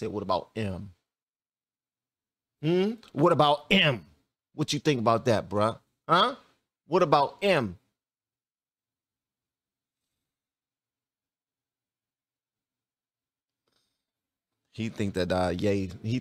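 A man speaks with animation close to a microphone, in short bursts with pauses.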